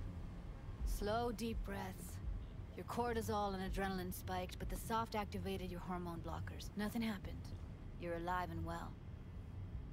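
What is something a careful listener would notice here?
A young woman speaks softly and calmly.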